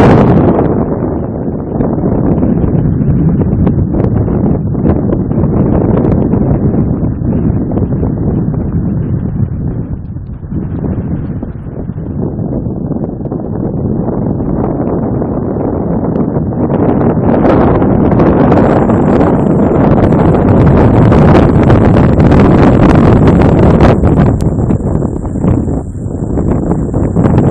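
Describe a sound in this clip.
Strong wind buffets the microphone outdoors, rumbling and gusting.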